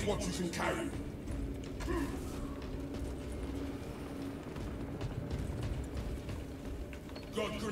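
Heavy armored footsteps thud on a stone floor.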